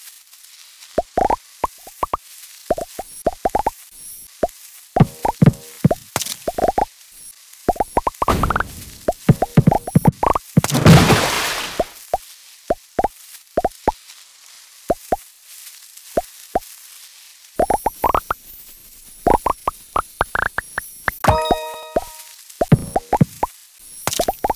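Quick rising electronic blips chime again and again in a game.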